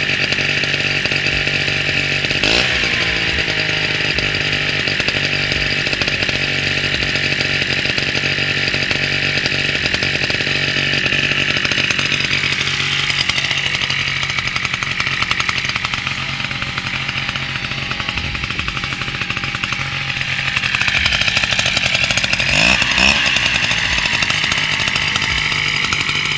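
The two-stroke engine of a backpack mist blower runs outdoors, its pitch rising and falling.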